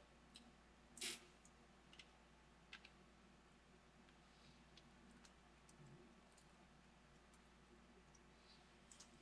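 Crunchy crackers crunch faintly.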